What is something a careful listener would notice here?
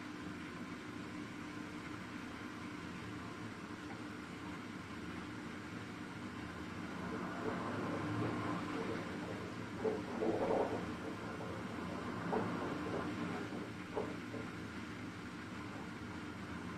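Water sloshes and splashes inside a washing machine.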